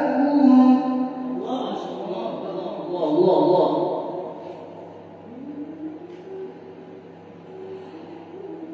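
A group of men chant together in a reverberant hall.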